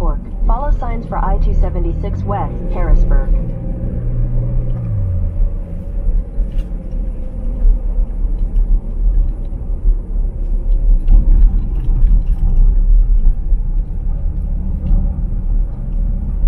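A car's engine hums steadily while driving.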